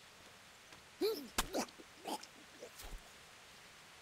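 Heavy blows thud against a man.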